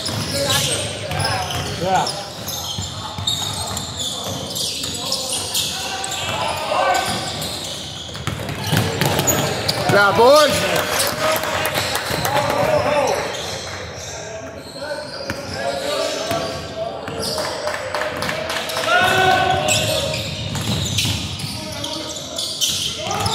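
Players and spectators shout and call out, echoing in a large hall.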